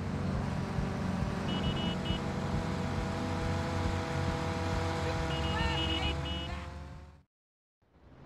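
A motorbike engine drones past and slowly rises in pitch.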